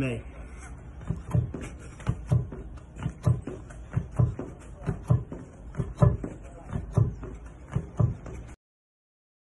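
A man jumps, his shoes thudding on a hard paved surface at a steady pace.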